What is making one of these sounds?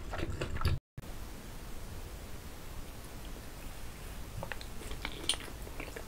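A young man chews food close to a microphone.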